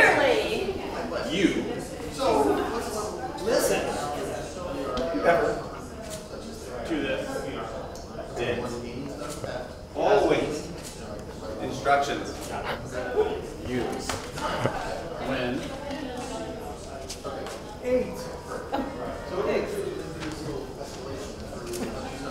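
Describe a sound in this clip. Several men and women talk quietly in a room.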